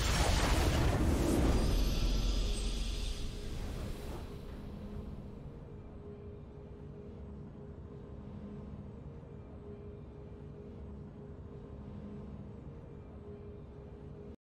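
A triumphant game fanfare plays softly.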